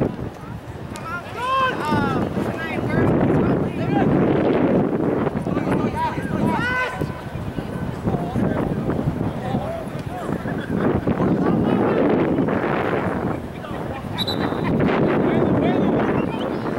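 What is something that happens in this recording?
Players shout to each other across a field.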